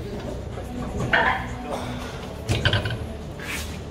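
A man grunts and breathes hard with effort, close by.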